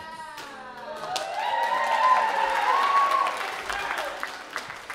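Young performers sing together.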